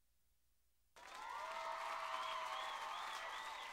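A crowd cheers at a concert.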